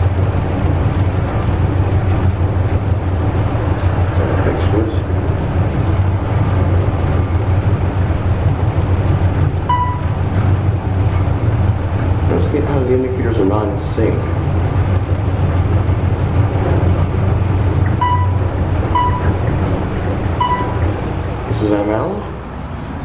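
An elevator car hums and rumbles steadily as it travels.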